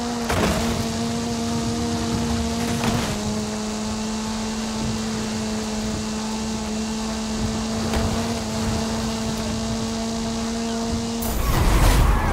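A rallycross car's engine roars at high revs.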